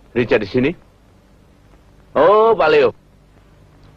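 A middle-aged man talks into a telephone handset.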